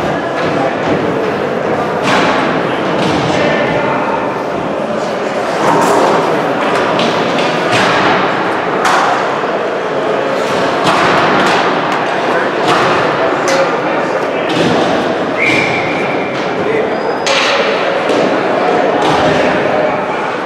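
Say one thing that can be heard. Hockey sticks clack sharply against a puck and each other.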